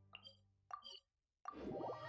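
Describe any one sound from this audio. Two short bright chimes ring from a game menu.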